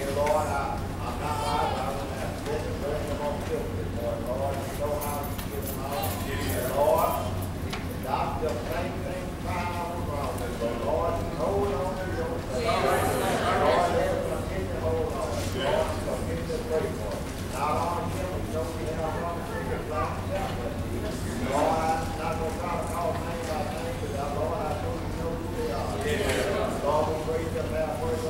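A choir sings in a large, echoing hall.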